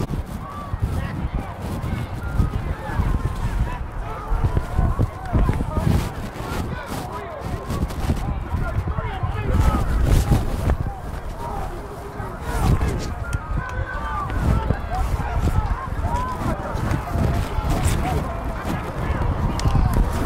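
A crowd of spectators and coaches shouts and cheers outdoors.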